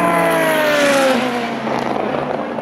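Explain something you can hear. A race car engine roars past at high speed and fades away.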